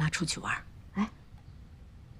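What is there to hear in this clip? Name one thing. A woman speaks coaxingly, close by.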